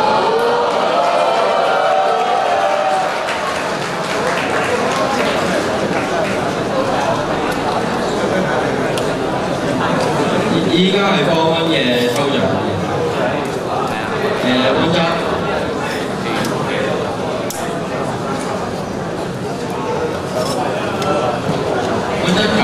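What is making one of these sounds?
A large crowd of young people chatters and calls out in a big echoing hall.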